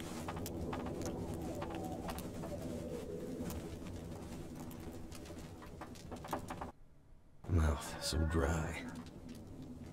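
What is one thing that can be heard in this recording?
A wood fire crackles and pops in a stove.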